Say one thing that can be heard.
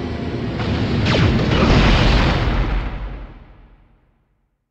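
An explosion booms and rumbles away.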